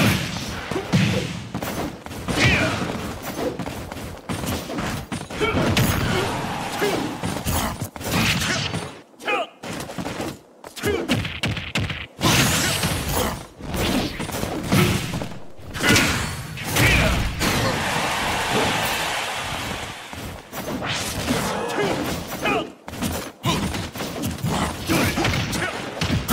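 Punches, kicks and blasts from a video game fight thump and crack in quick bursts.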